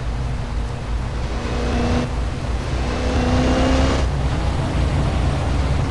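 A van passes close by.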